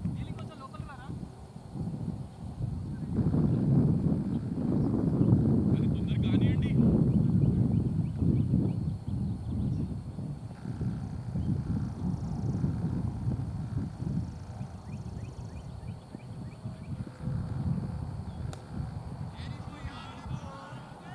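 Wind rumbles and buffets outdoors.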